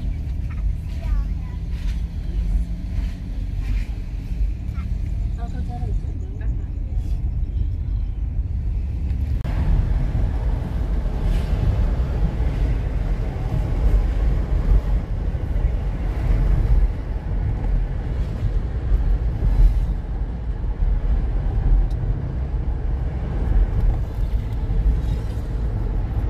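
A car engine rumbles steadily from inside the car as it drives.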